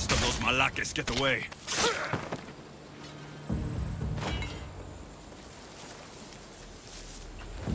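Tall dry grass rustles as someone creeps through it.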